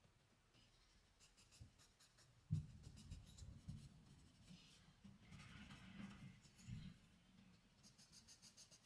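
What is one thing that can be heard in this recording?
Charcoal scratches and rubs softly on paper.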